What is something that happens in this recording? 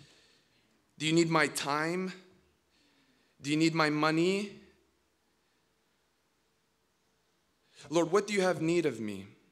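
A young man speaks calmly into a microphone, in short phrases with pauses.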